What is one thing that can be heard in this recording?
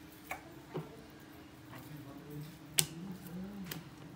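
Raw meat is handled with soft, wet slaps on a wooden board.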